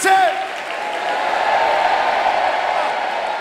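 A large crowd cheers and murmurs.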